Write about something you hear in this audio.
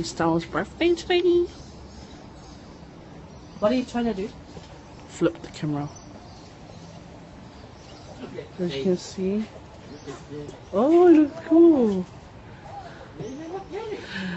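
A young woman talks animatedly close to a phone microphone.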